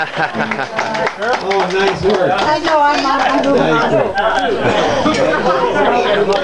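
A small band plays music with guitar and fiddle.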